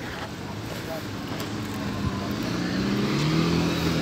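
A car drives past close by.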